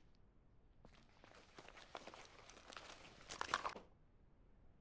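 Items rustle as a crate is searched.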